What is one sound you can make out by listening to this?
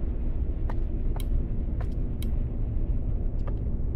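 A grandfather clock ticks steadily.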